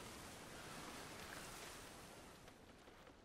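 Water splashes faintly.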